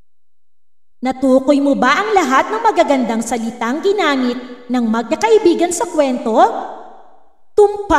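A woman sings in a lively voice.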